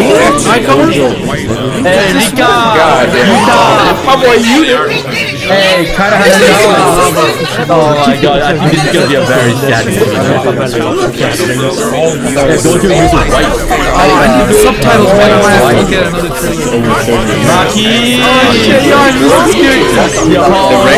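Many young men and women talk and shout over one another through microphones.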